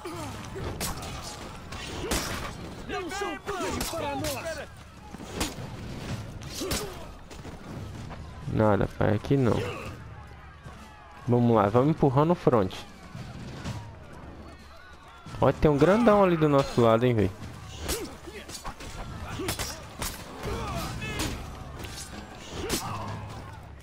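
Swords clash and slash.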